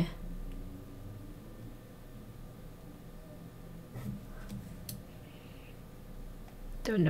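A young woman speaks quietly and casually into a close microphone.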